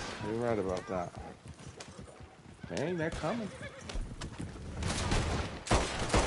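A horse-drawn wagon rattles along.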